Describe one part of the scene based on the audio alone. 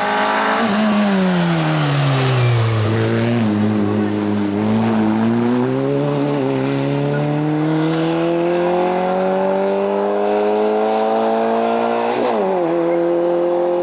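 A rally car engine roars close by, dropping in pitch as the car brakes, then climbing steadily as it accelerates away.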